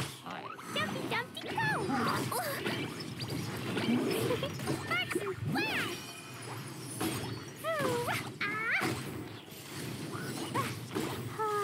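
Fiery blasts burst in quick bangs.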